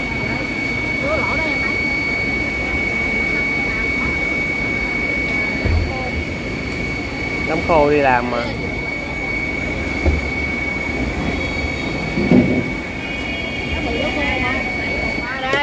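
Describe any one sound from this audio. Water splashes and bubbles in a tank.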